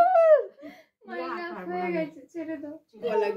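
Women talk and chatter nearby.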